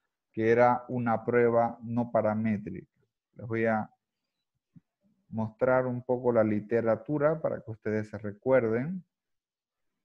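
A young man speaks calmly over an online call.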